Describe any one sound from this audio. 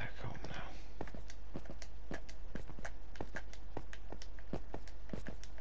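Dirt crunches repeatedly as it is dug.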